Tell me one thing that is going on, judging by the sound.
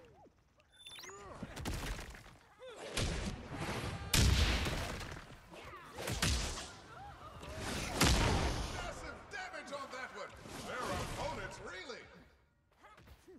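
Game weapons clash and hit with loud impacts.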